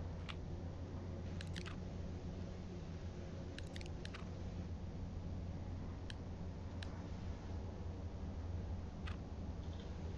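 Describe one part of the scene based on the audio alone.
Soft clicks sound now and then from a game menu.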